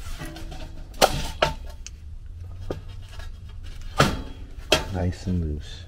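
Sheet metal clanks and clicks sharply now and then.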